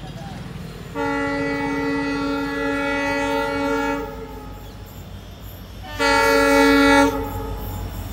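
A train horn blares loudly twice.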